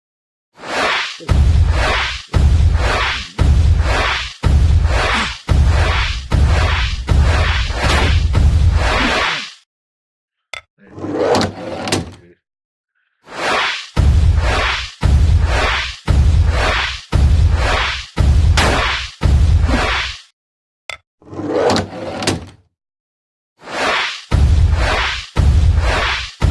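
Laser blasts fire in quick repeated bursts.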